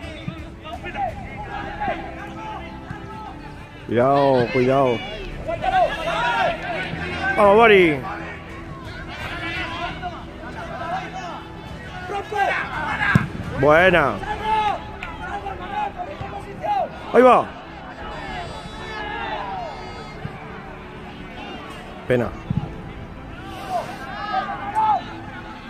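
Young men shout to each other outdoors across an open pitch.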